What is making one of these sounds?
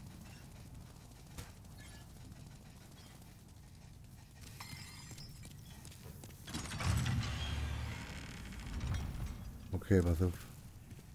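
Footsteps run quickly on a stone floor.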